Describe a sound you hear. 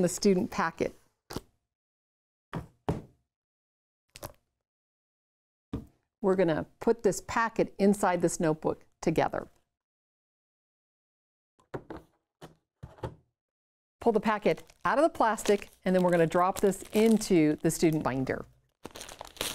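A middle-aged woman speaks with animation, close to a microphone.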